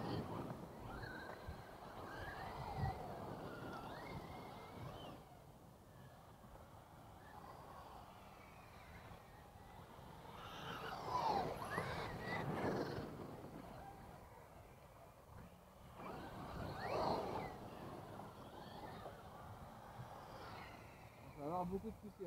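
Tyres of radio-controlled cars skid and crunch on loose dirt.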